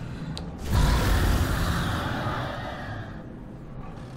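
A monster lets out a loud roar.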